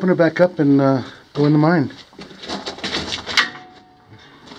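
A metal gate rattles as it is pushed open.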